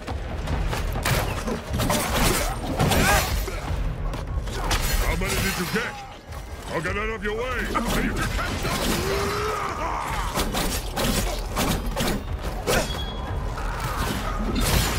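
Swords swish and clash in quick strikes.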